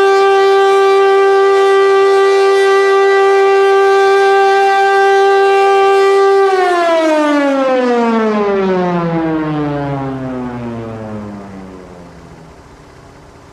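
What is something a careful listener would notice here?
A loud siren blares a steady tone and then slowly winds down.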